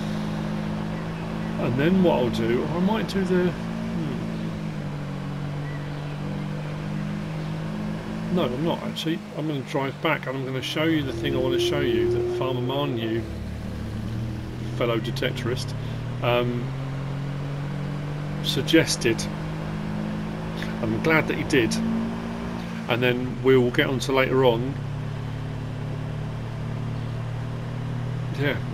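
A heavy truck engine hums steadily as the truck drives along.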